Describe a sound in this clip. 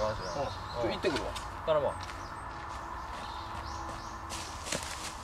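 Footsteps rustle and crunch through dry leaves.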